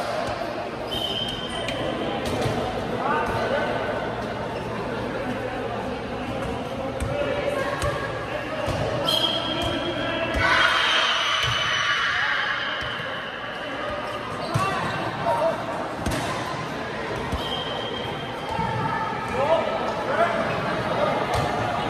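Sneakers squeak on the hard court floor.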